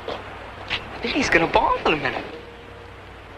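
A man speaks excitedly nearby.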